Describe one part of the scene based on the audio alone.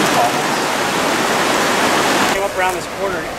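A river rushes loudly close by.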